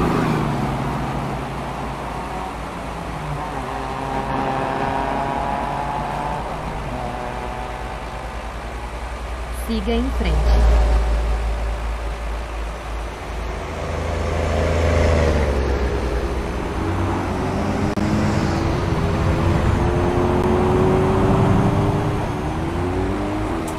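A bus engine drones steadily, its pitch rising and falling as it changes gear.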